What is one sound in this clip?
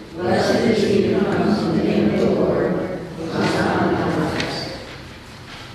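An elderly man speaks calmly in a large echoing hall, heard through a microphone.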